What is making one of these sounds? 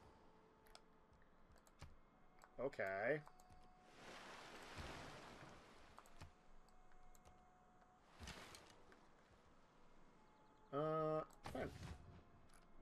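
Short interface clicks and chimes sound now and then in a computer game.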